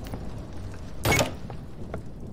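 A door unlocks and swings open with a loud burst.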